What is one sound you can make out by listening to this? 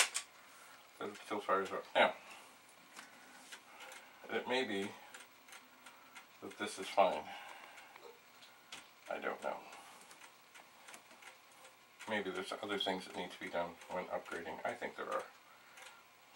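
An older man talks, close by.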